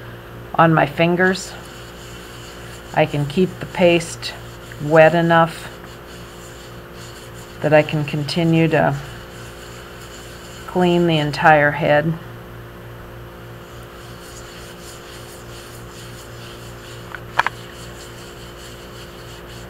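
Wet fingers softly rub and smooth clay.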